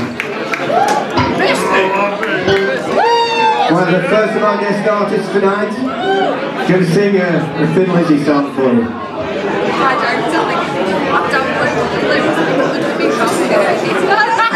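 A live rock band plays with electric guitars, drums and keyboards.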